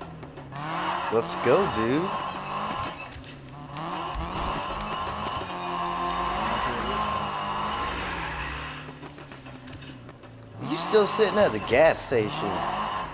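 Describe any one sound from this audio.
Tyres screech as a car drifts.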